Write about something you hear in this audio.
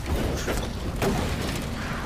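A fire bomb bursts into flames with a booming blast.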